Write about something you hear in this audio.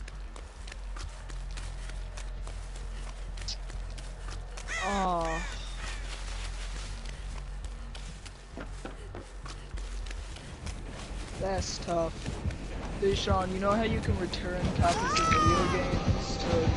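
Footsteps run quickly over soft ground and wooden boards.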